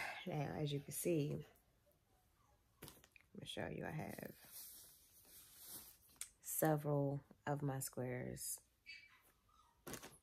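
Soft yarn rustles as crocheted pieces are handled.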